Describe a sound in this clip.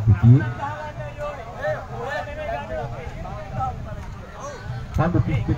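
A group of young men chant together loudly outdoors.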